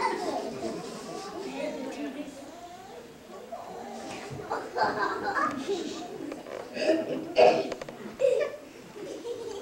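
A young boy speaks into a microphone, heard through a loudspeaker in an echoing hall.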